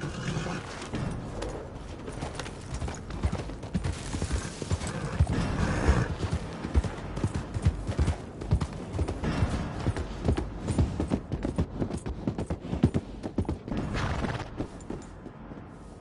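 Horse hooves thud rapidly on the ground.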